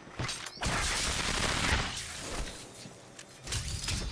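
An energy weapon fires with a loud crackling blast.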